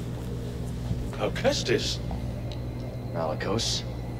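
An elderly man speaks in a deep, calm voice.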